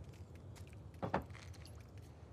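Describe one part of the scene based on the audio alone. A trophy is set down on a hard surface with a dull knock.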